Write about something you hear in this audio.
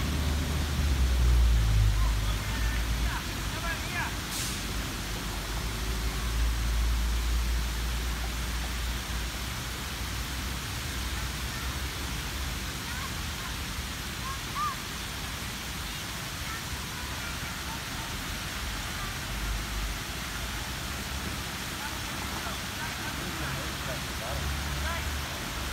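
A fountain splashes and hisses steadily outdoors.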